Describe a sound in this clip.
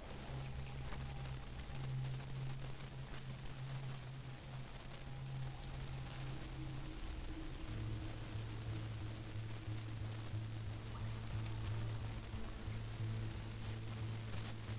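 Short soft interface clicks sound now and then.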